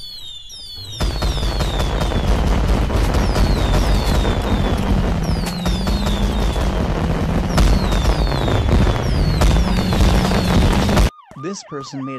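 Fireworks whistle and burst loudly.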